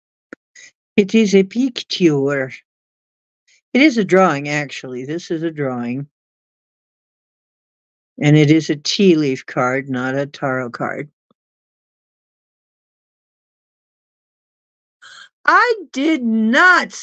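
An older woman speaks calmly and close to a microphone, in bursts with pauses.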